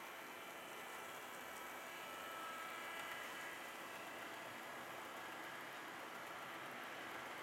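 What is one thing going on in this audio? Small wheels rattle and click over rail joints.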